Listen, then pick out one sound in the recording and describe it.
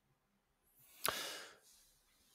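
A second young man exhales sharply close to a microphone.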